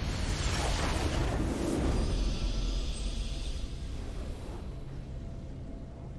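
A triumphant game fanfare swells and slowly fades.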